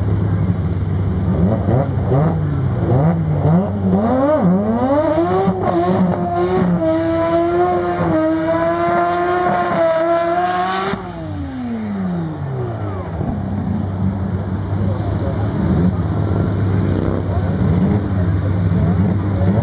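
A race car engine revs loudly, rising in pitch and then dropping away.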